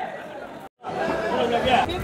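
A crowd chatters in the background.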